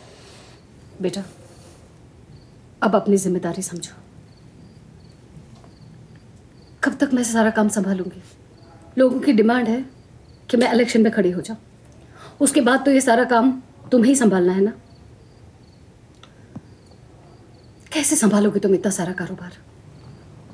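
A middle-aged woman speaks firmly and with feeling, close by.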